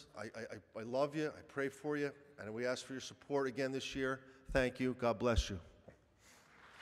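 A middle-aged man speaks earnestly into a microphone in an echoing hall.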